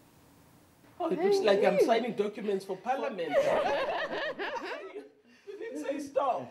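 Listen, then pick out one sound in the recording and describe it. An elderly woman speaks warmly close by.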